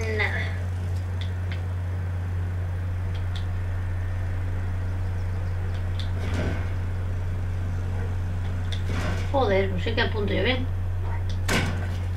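A lock clicks and rattles as it is picked.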